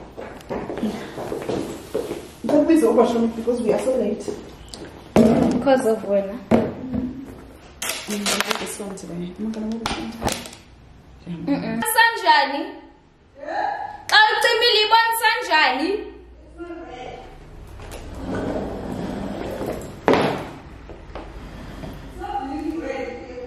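A young woman talks and laughs close by.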